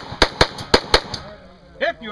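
A pistol fires a rapid string of sharp shots outdoors.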